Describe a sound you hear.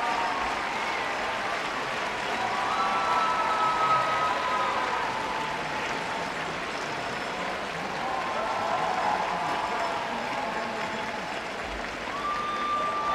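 A large crowd claps steadily in a big echoing hall.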